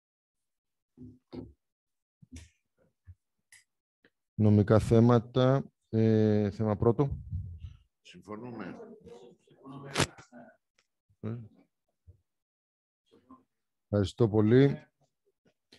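A man speaks calmly through a microphone in an online meeting.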